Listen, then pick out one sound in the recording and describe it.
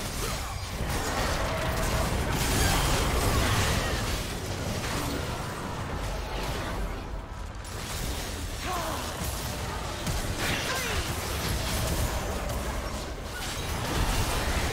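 Spell effects whoosh, crackle and boom in a busy game battle.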